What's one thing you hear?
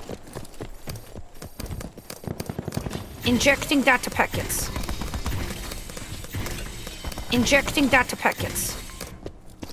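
Keys clatter rapidly on a keyboard.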